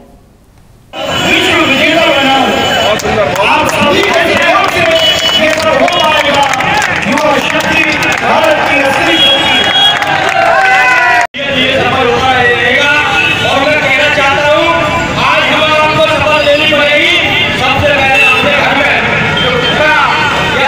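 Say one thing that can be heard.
A man speaks loudly into a microphone through a loudspeaker, outdoors.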